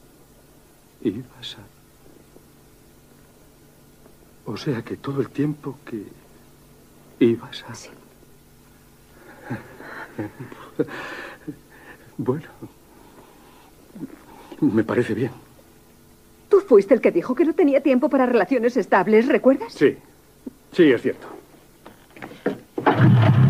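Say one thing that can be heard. A man speaks softly up close.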